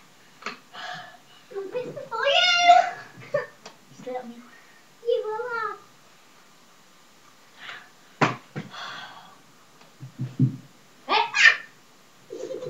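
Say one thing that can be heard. A young boy talks and shouts excitedly nearby.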